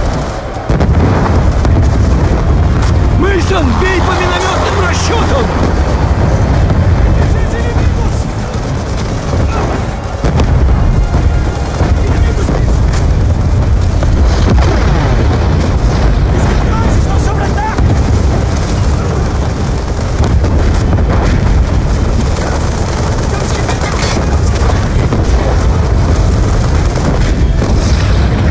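Explosions rumble and boom throughout a battle.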